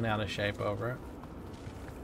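A man speaks into a close microphone.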